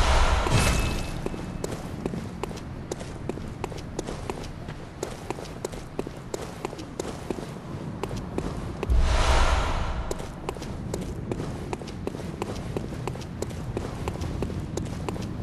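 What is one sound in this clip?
Footsteps tap quickly on stone.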